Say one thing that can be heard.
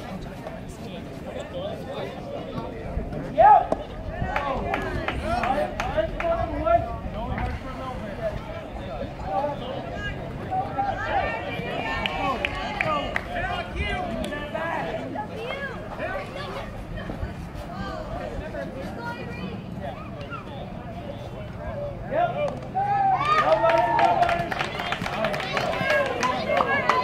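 A crowd of spectators chatters and cheers across an open outdoor field.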